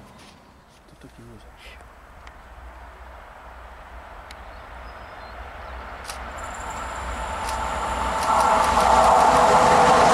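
An electric locomotive hauling a freight train approaches, its rumble growing louder.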